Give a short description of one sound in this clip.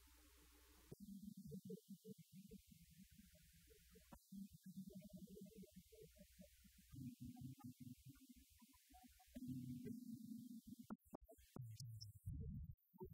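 A man speaks over loudspeakers in a large hall.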